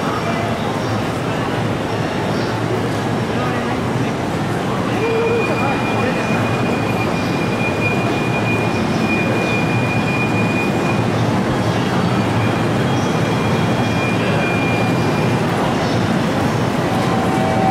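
An electric train idles with a steady hum.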